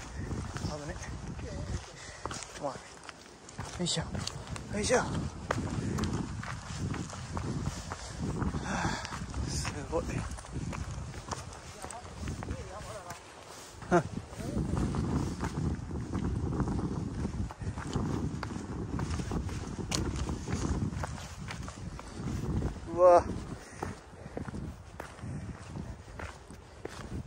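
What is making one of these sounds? Footsteps crunch on dry leaves and loose stones along a trail.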